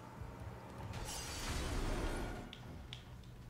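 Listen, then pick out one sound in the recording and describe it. A magic blast crackles and bursts.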